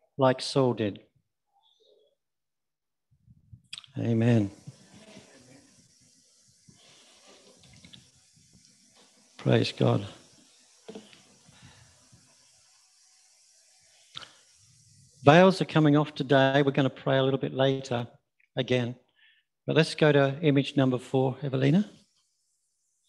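An elderly man speaks calmly in a room with a slight echo, in bursts with pauses.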